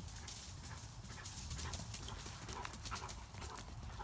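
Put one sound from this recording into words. A dog's paws patter across dry leaves.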